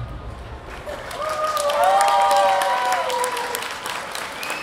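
Several young women sing out together in long held notes through microphones in a large hall.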